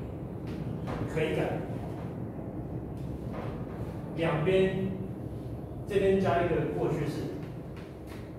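A man lectures through a microphone in a room with a slight echo.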